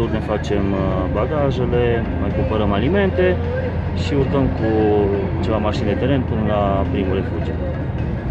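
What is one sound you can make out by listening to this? A man talks calmly, close to a phone's microphone.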